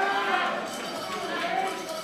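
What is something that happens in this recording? A young woman shouts with effort.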